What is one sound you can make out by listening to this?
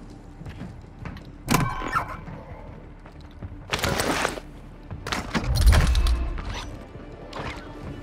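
Short clicks sound as items are picked up.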